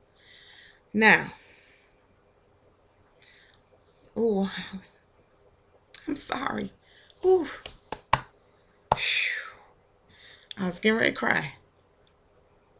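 A woman speaks close to a microphone in short phrases with pauses.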